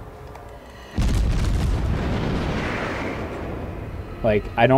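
Naval guns fire with a heavy roar.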